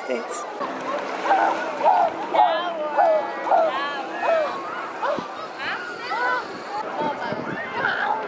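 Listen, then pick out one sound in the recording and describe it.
A swimmer splashes through water.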